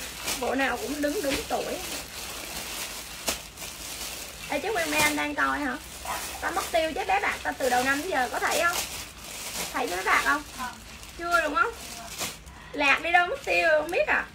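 Plastic bags rustle and crinkle as clothes are handled.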